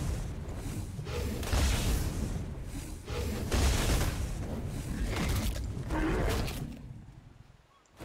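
Electricity crackles and buzzes loudly in bursts.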